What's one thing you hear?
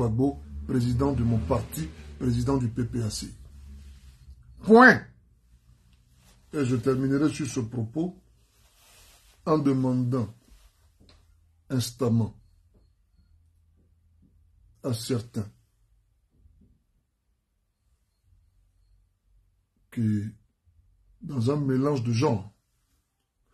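A man speaks calmly close to a microphone, in short phrases with pauses.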